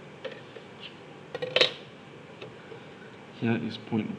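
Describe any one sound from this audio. A plastic ruler is set down on paper.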